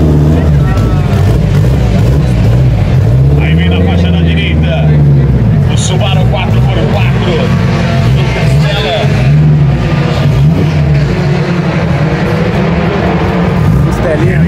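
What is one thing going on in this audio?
A race car engine idles with a loud, rough, rumbling burble that rises and falls.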